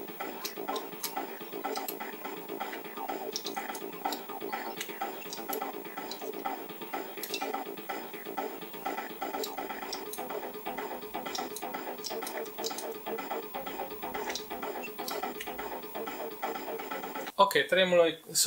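Upbeat video game music plays with a quick, steady beat.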